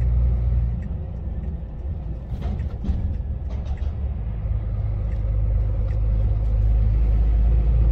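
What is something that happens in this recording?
A large engine rumbles steadily inside a cab.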